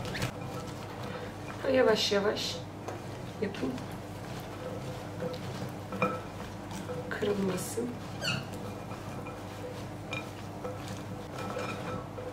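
A cloth pats and rubs against damp potato strips in a glass bowl.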